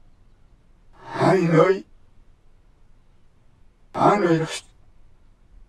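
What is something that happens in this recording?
An elderly man speaks slowly and earnestly, close by.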